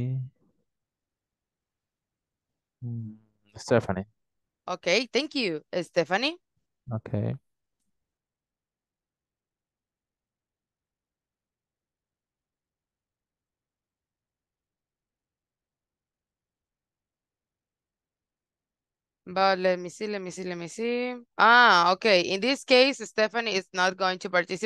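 A woman speaks calmly over an online call, pausing at times.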